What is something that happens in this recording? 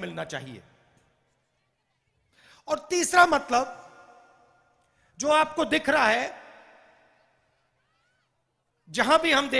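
A man speaks forcefully into a microphone through loudspeakers, in short bursts with echoing pauses.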